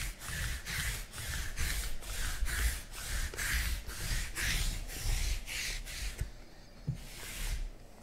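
A sticky lint roller rolls back and forth with a rhythmic rasping.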